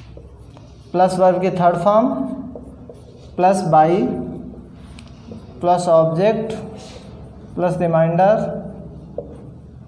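A man speaks clearly and slowly in short phrases, close by.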